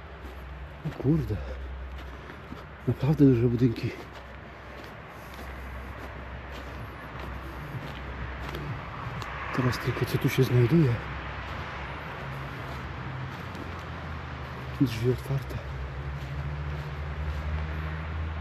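Footsteps crunch softly over dry leaves and grass.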